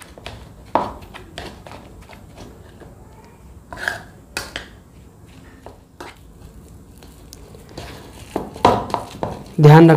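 Fingers crumble soft food in a bowl.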